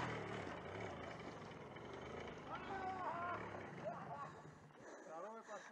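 A motorcycle engine runs and revs.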